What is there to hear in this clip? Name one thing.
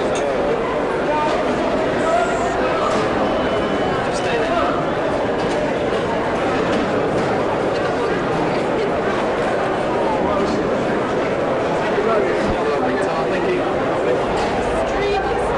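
Many people chatter and murmur nearby.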